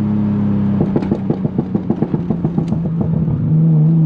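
A car exhaust pops and crackles in a fast rhythm.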